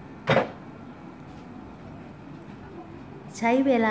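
A waffle iron lid swings shut with a soft clack.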